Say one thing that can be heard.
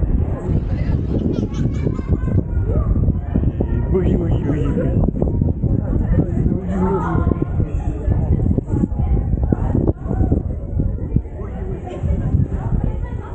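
Voices of a crowd chatter nearby.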